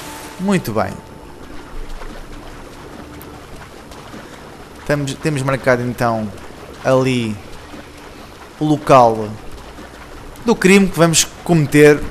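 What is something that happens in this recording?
Water sloshes softly with swimming strokes.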